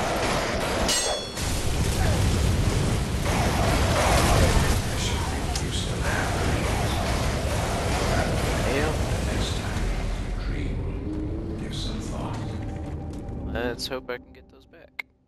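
A large beast roars and screeches close by.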